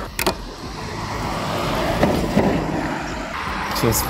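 A fuel cap clicks open.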